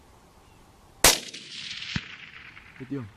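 A rifle shot cracks loudly and echoes across open country.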